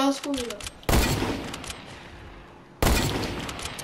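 A gun fires loud sharp shots.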